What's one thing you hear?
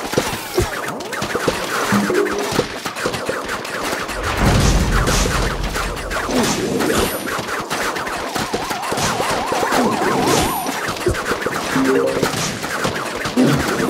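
Game plants fire peas with quick popping shots.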